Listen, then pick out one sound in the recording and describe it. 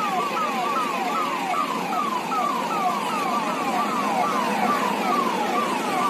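Vehicle engines rumble as a convoy drives closer.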